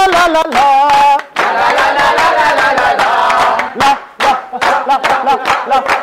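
A group of young men and women sing together loudly outdoors.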